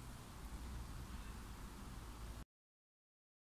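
A man sips a drink from a mug.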